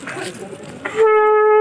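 A man blows a conch shell in a loud, steady blast.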